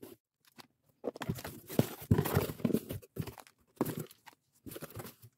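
Cardboard flaps scrape and thump as a box is opened.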